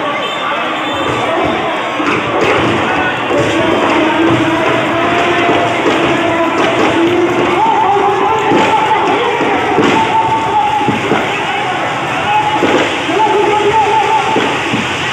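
Firecrackers crackle and pop as an effigy burns.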